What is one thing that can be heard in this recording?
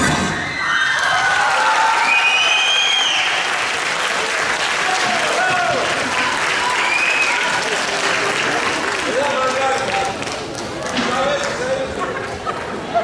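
Young dancers shout and whoop loudly in an echoing hall.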